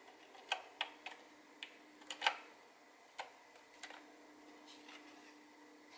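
Small plastic and metal parts click and tap as fingers handle a circuit board.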